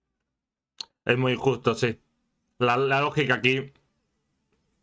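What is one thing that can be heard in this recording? A man speaks briefly with animation, close to a microphone.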